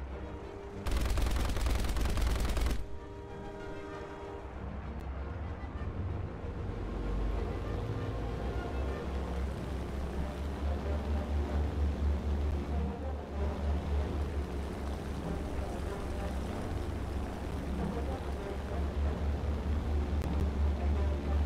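Aircraft propeller engines drone and throb steadily, growing louder.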